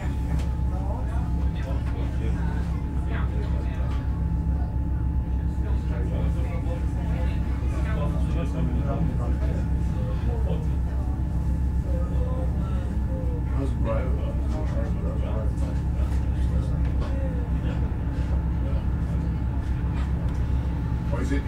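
Footsteps tap on a hard floor as people walk past.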